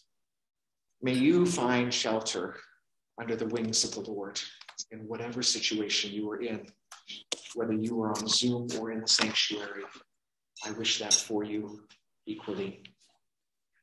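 A woman reads aloud calmly over an online call.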